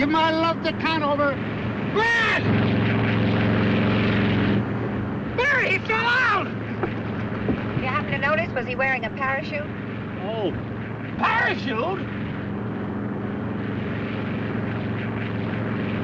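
An airplane engine drones steadily.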